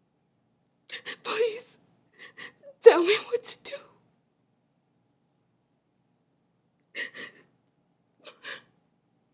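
A young woman speaks tearfully and close by, her voice breaking.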